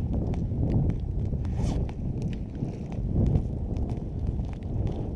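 Boots crunch on snow.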